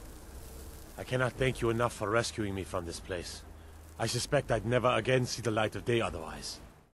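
An older man speaks calmly and gratefully.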